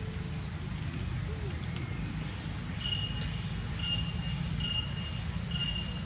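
Dry leaves rustle under a small monkey's feet.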